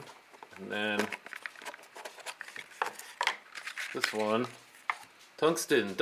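A paper card rustles.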